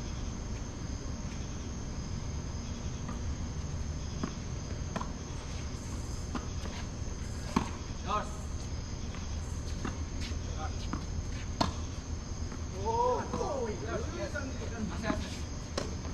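Tennis balls are struck with rackets and bounce on a hard court.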